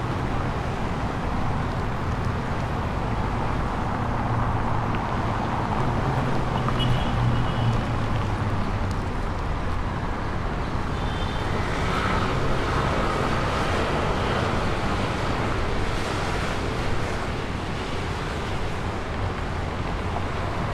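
City traffic rumbles steadily along a cobbled street outdoors.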